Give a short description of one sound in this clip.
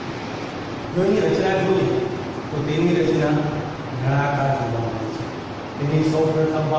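A middle-aged man speaks clearly into a close microphone, explaining.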